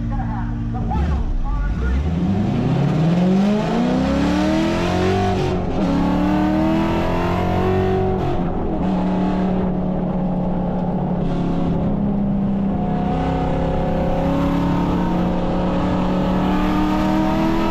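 A car engine roars as the car accelerates hard, its pitch rising and falling with each gear change.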